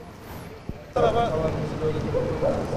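A man talks calmly outdoors, close by.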